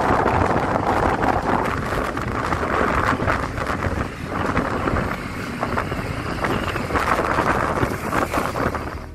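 A motorbike engine hums steadily.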